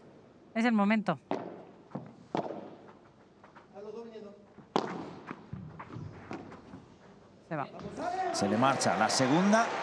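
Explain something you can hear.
Padel rackets strike a ball with sharp pops.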